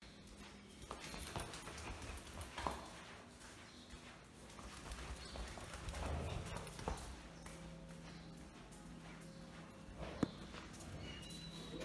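Bare feet pad on tiled stairs and floor.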